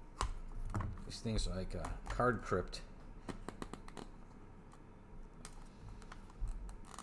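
Trading cards riffle and click as they are flipped through quickly.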